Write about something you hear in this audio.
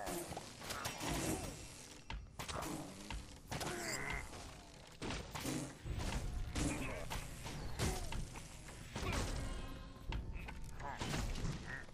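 Arrows whoosh through the air.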